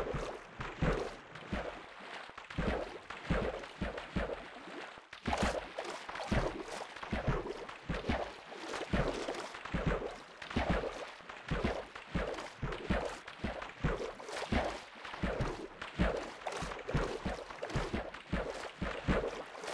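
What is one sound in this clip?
Water splashes softly with swimming strokes.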